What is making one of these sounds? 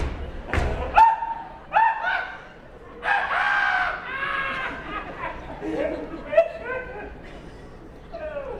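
A woman sings expressively.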